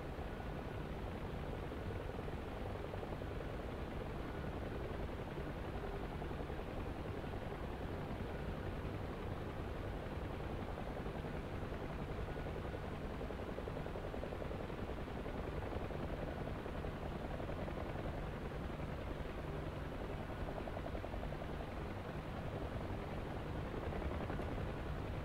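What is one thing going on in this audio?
A helicopter engine and rotor roar steadily from inside the cabin.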